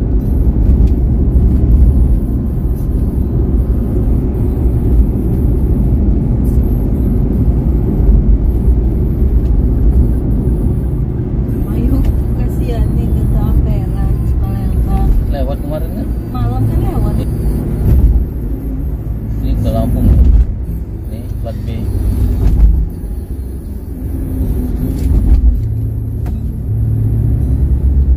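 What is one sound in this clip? Raindrops patter on a car's windshield.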